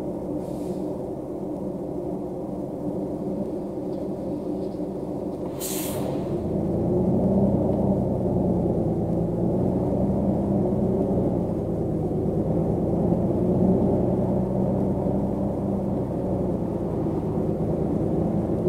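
A bus engine hums and grows louder as the bus speeds up.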